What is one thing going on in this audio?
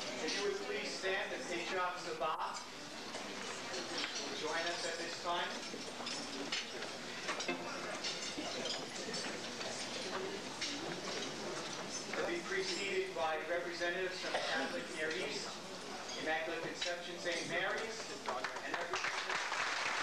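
Men and women talk and murmur nearby in a crowd.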